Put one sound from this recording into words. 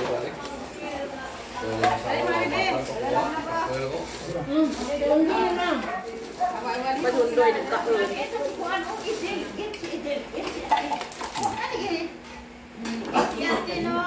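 Plates and serving spoons clink softly.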